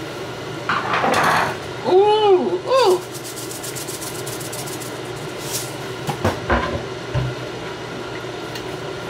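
A pot of thick soup simmers and bubbles softly.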